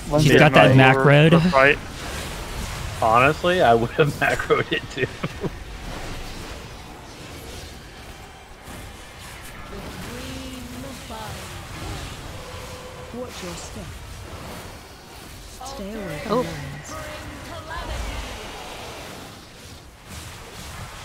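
Magic spell effects whoosh and crackle in a busy battle.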